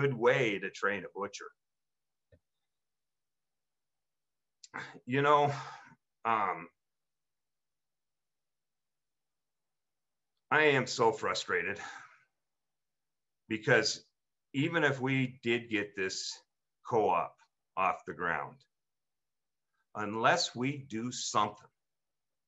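A middle-aged man speaks calmly over an online call, with long pauses.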